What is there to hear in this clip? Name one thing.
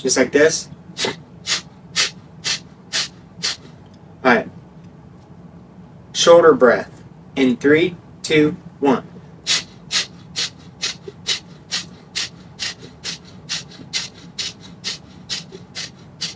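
A young man claps his hands in a steady rhythm.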